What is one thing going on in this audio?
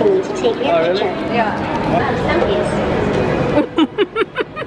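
A humanoid robot speaks in a synthetic voice through a small loudspeaker.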